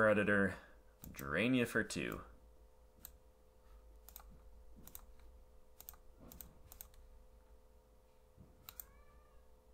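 Short interface clicks sound as cards are picked in a card game.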